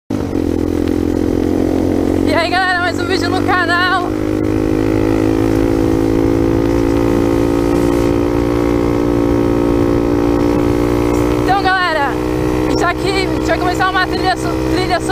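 A dirt bike engine hums at a steady cruising speed.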